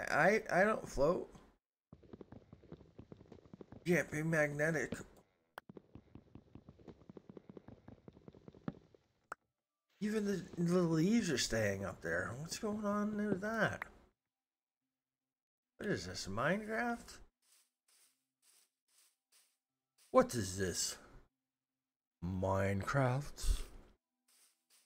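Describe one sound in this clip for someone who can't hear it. A man talks with animation close to a microphone, in short bursts.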